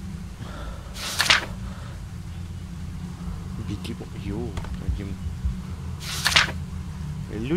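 Paper rustles sharply as a note is picked up.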